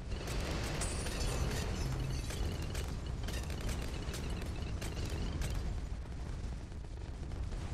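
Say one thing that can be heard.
Cartoonish explosions and popping effects crackle rapidly and continuously.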